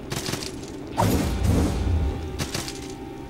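A magical burst whooshes loudly.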